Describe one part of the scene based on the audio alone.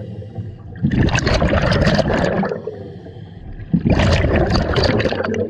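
A diver exhales through a regulator, sending bursts of bubbles gurgling and rumbling underwater.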